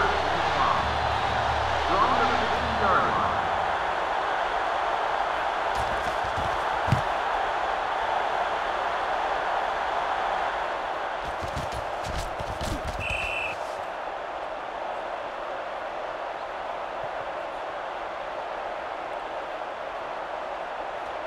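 A stadium crowd cheers and murmurs steadily in a large open space.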